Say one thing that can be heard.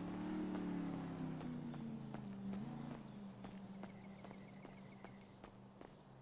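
Footsteps run quickly on a track.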